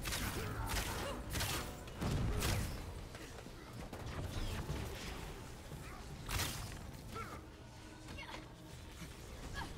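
Arrows whoosh from a bow.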